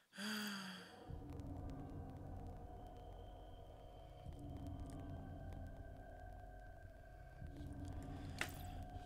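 A low electronic drone hums steadily with soft tones.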